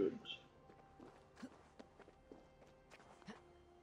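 A climber's hands and boots scrape and knock on rock.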